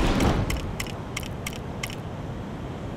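Menu selections tick quickly one after another.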